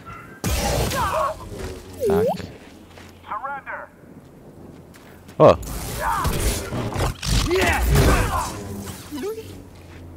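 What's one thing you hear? Lightsaber blades hum and clash in a fight.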